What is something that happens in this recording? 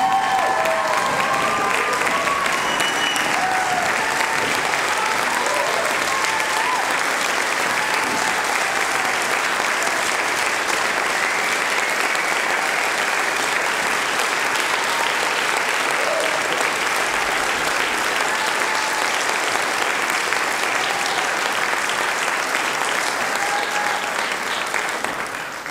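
An audience cheers and whoops loudly.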